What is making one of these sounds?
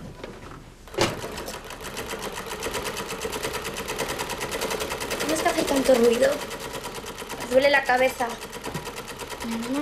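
A treadle sewing machine whirs and clatters rapidly and steadily.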